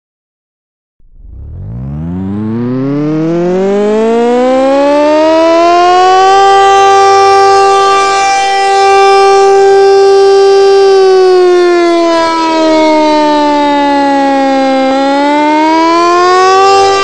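A siren winds up from silence to a loud, steady wail, then dips and rises again.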